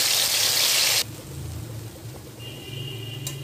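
A thick sauce bubbles and simmers in a pot.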